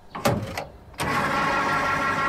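A fuel pump whirs steadily.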